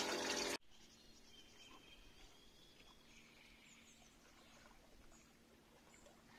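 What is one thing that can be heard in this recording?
Water laps gently against the side of a boat.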